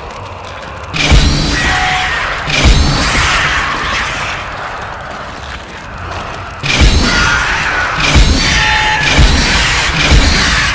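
A weapon fires loud, sharp blasts several times.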